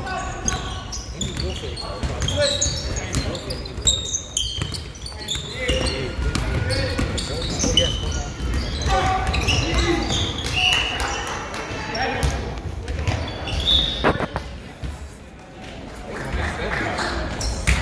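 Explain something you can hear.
A crowd of young men and women chatters and shouts in a large echoing hall.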